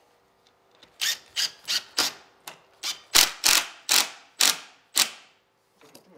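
An impact driver rattles in short, loud bursts.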